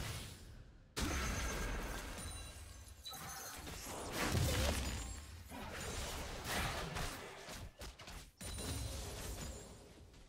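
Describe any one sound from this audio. Spell blasts crackle and boom in a fast battle.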